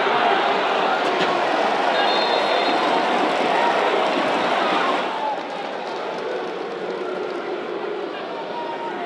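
A large stadium crowd cheers, then quietens.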